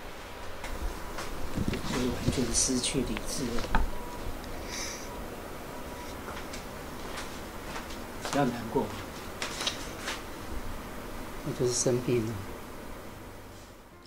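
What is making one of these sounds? An elderly woman speaks with feeling, close by.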